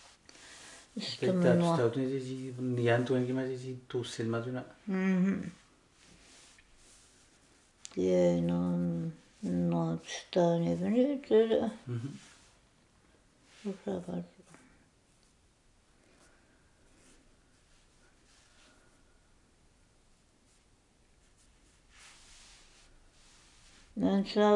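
An elderly woman speaks slowly and calmly, close by, with long pauses.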